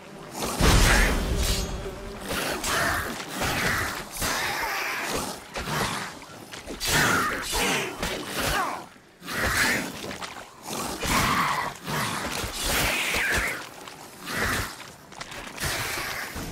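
Swords slash and clash in a fight.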